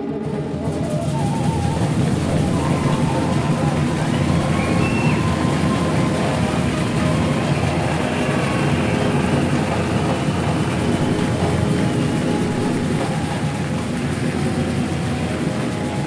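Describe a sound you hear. A large drum group pounds out a loud, steady rhythm in a big echoing hall.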